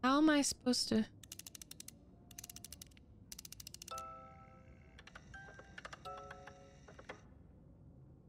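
Metal cylinders click as they turn in a small mechanism.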